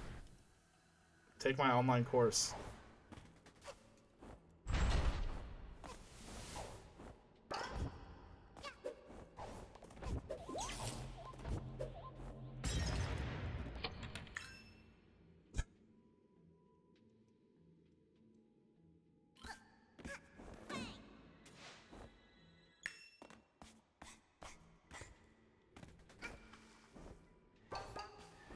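Video game sound effects whoosh and chime.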